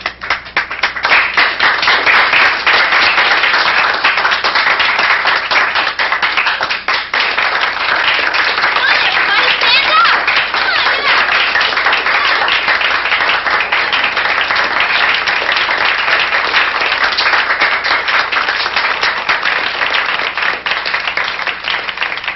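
A crowd of young people applauds and cheers loudly.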